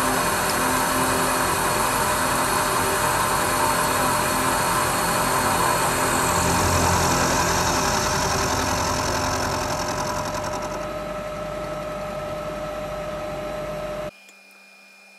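A milling cutter grinds steadily through metal with a high whine.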